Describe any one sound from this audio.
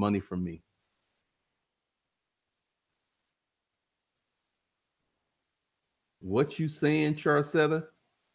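A man speaks close into a microphone, with short pauses.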